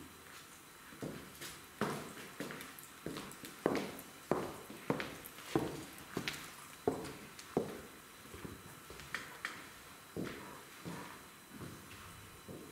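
Heels click on a wooden floor as a woman walks away.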